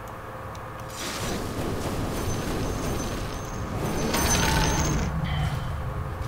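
Magic spells whoosh and crackle in bursts.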